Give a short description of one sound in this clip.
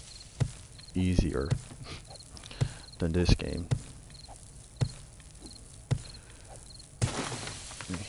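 A wooden club strikes with dull thuds.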